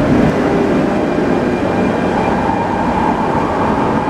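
A train pulls away from the platform with a rising whine.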